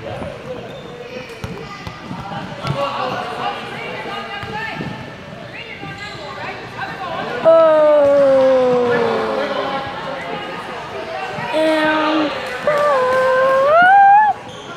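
Young children shout and chatter in a large echoing hall.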